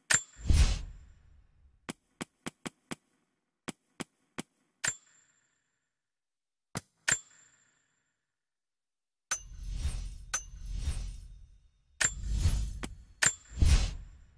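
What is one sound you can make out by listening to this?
Short menu clicks tick several times in quick succession.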